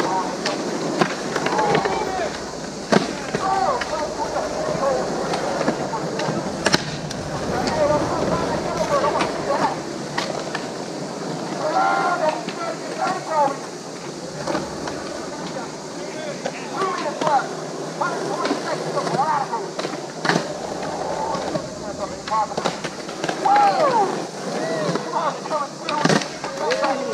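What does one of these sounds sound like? Skateboards clack and snap against the ground.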